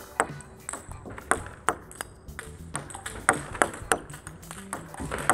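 Table tennis balls bounce rapidly on a table and clatter against a paddle in an echoing hall.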